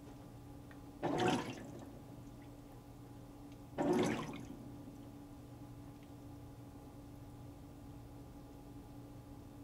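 A washing machine hums steadily while agitating.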